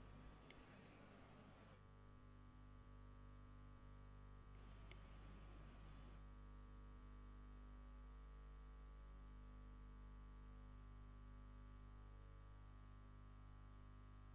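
A low electrical hum drones steadily from loudspeakers.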